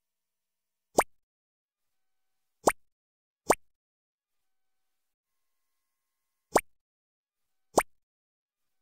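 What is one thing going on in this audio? Short game interface clicks sound as menu options are tapped.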